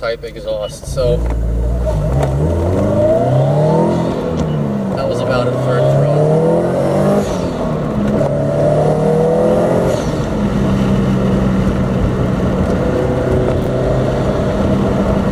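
A car engine hums and revs up and down as the gears change.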